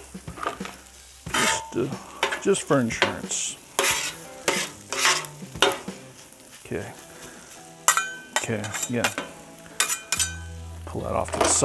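A metal spatula scrapes across a griddle.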